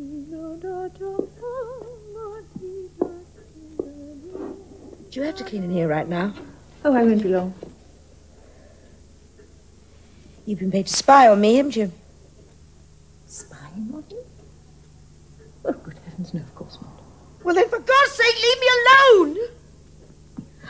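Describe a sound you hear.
A woman speaks tensely over a phone, close by.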